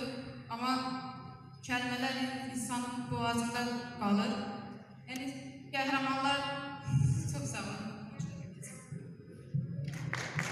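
A young girl recites loudly through a loudspeaker in a large echoing hall.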